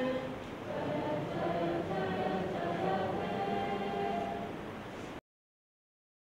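A crowd of men and women sings together in unison in a large echoing hall.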